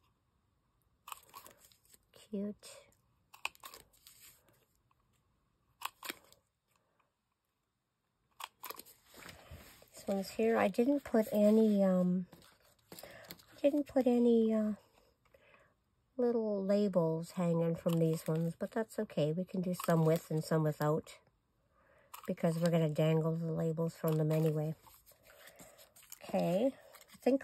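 Stiff paper rustles and taps as it is handled.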